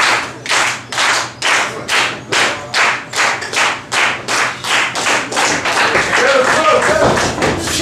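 A crowd claps in a steady rhythm.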